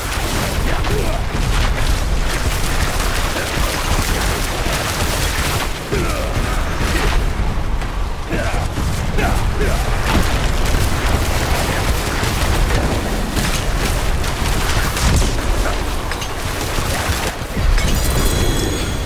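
Icy spells crackle and shatter in rapid bursts.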